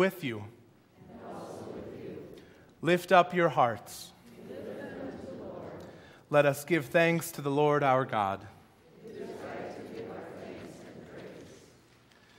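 A congregation sings a response together.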